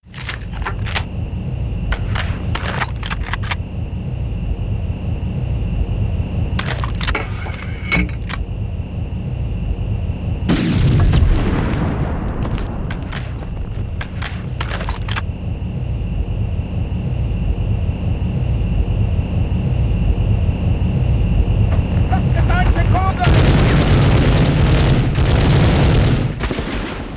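Gunshots crack in quick bursts, echoing in a tunnel.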